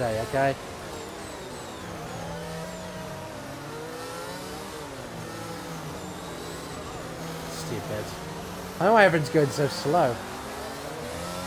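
A racing car engine whines and shifts pitch as it accelerates and slows.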